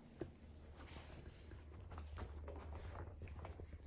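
Shoes step softly on carpet.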